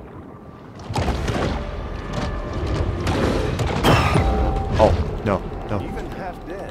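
A large creature lunges with a heavy, sudden splash.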